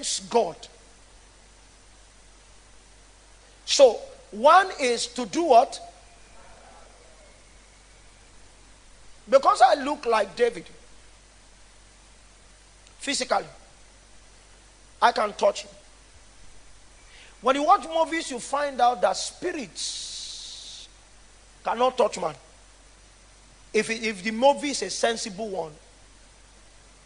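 A man speaks with animation through a microphone, in short bursts with pauses between them.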